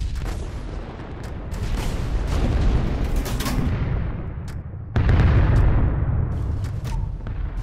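Heavy guns fire in sharp, booming blasts.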